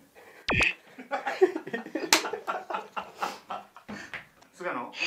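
Two young women laugh loudly.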